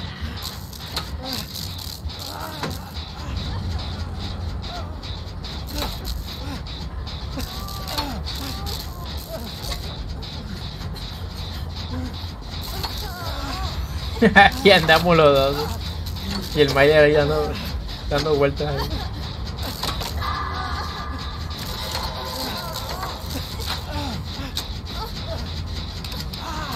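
A generator hums and rattles.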